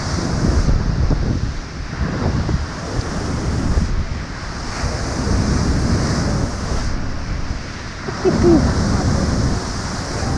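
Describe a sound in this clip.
Rough waves crash and churn against a sea wall.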